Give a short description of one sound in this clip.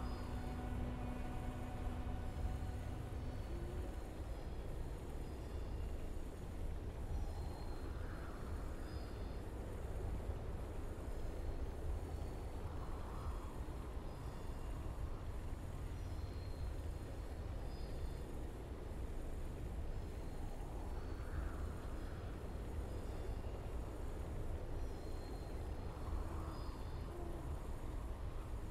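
Dark, low ambient music drones steadily, with soft swells that come and go.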